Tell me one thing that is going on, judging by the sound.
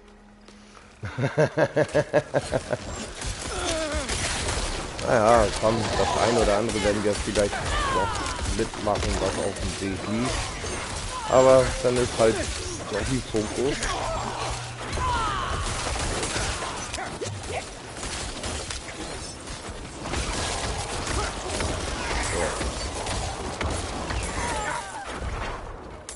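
Weapons slash and spells crackle in a fierce fight.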